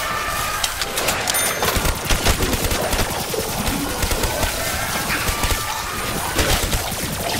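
Gunfire blasts rapidly in quick bursts.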